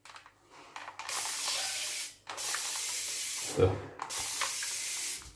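A spray bottle hisses in long, steady bursts.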